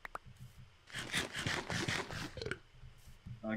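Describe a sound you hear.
A player character munches food with crunchy chewing.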